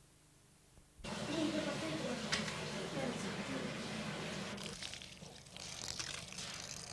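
Hands squish and rustle through cooked grains in a metal pot.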